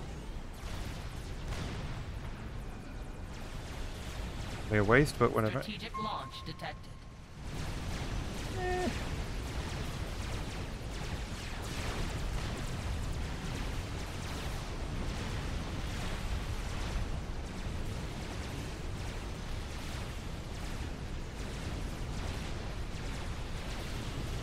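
Rumbling explosions and gunfire rattle on without a break.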